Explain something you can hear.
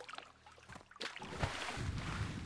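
A character splashes into water.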